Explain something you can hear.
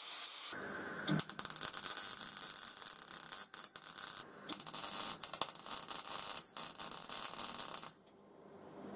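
A welding torch crackles and sputters.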